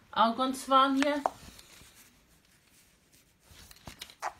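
Fabric rustles softly as a jacket is handled.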